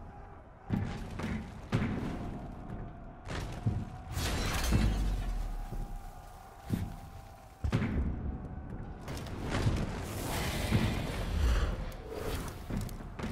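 Fires crackle and burst with loud booms.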